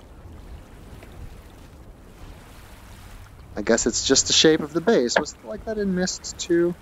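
Water laps gently nearby.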